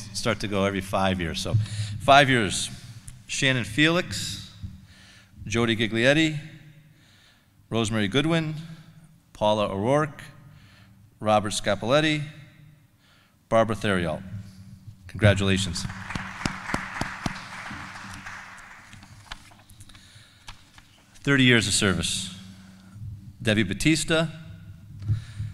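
A man speaks through a microphone into a hall, reading out with short pauses.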